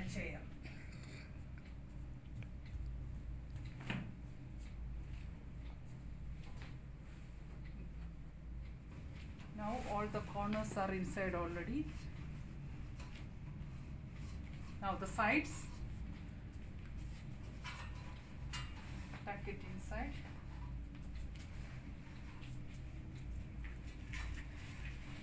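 Cloth rustles as a bed sheet is spread and tucked in.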